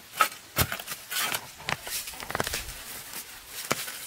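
Dirt and roots rustle and crackle as a hand pulls at them.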